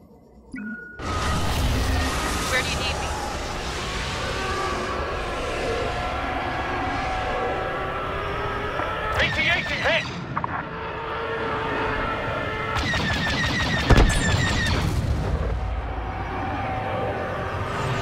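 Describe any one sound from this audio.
A fighter craft's engine roars loudly in flight.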